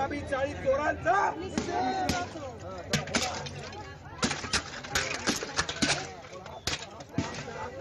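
Clay pots smash on the ground.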